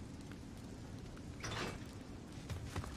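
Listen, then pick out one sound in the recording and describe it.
A heavy locked door rattles once when pulled.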